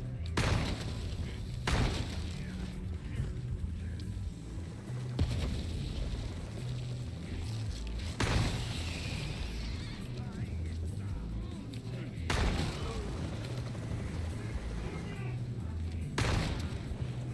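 Shotgun blasts boom, each followed by a short echo.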